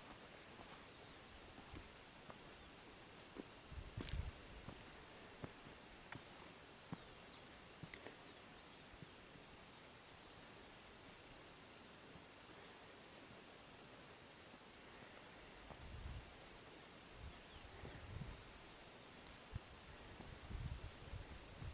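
Wind gusts softly outdoors.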